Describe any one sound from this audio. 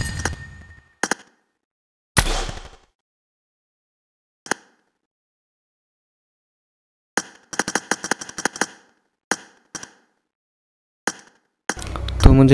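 Short menu clicks and chimes sound now and then.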